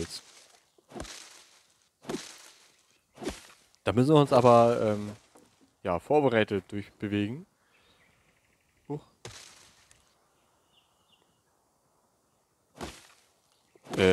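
An axe chops into wood in sharp, repeated blows.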